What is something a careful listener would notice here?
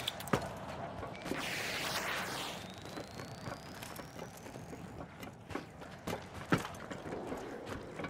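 Footsteps patter quickly across roof tiles.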